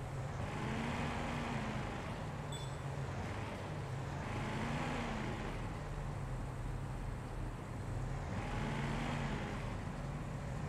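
A car engine hums and revs as it drives along a street.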